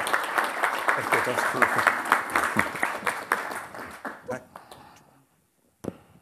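An audience applauds, then the clapping fades away.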